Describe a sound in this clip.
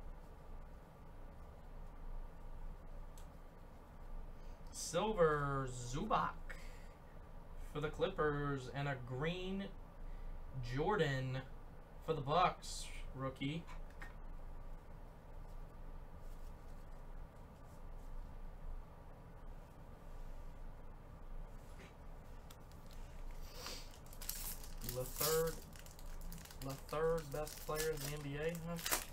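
Trading cards slide and rustle.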